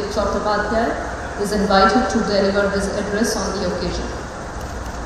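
A woman speaks through a microphone and loudspeakers in a large hall.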